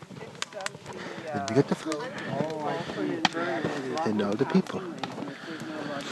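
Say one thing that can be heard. A wood bonfire crackles.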